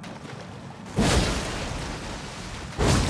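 A sword swishes through the air with a heavy strike.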